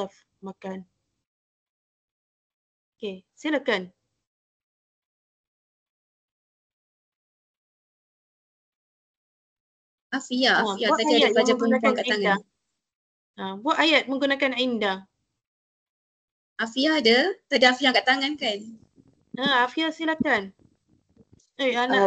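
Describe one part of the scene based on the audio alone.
A young woman speaks calmly through an online call, in short phrases with pauses.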